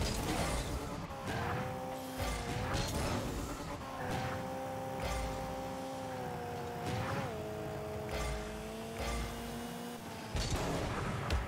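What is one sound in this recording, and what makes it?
A game car's engine hums steadily, rising and dipping in pitch.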